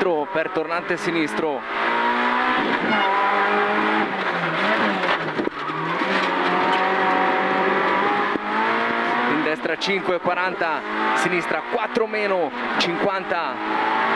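A rally car engine revs hard and shifts gears.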